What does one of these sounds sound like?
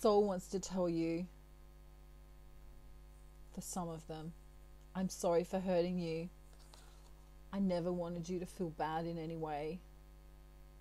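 A woman speaks calmly and close, with pauses.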